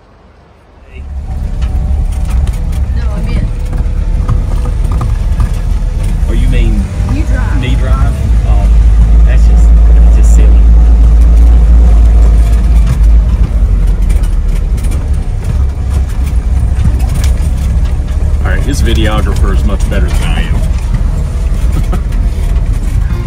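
A car engine rumbles steadily while driving slowly over a rough dirt track.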